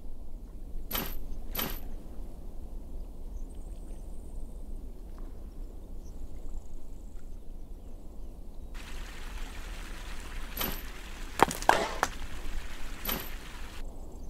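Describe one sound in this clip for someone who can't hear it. Short soft chimes and clicks ring out now and then.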